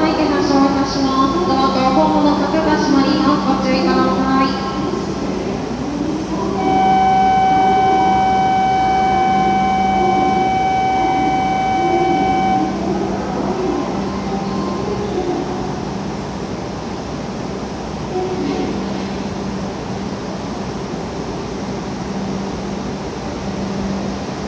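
A train hums steadily.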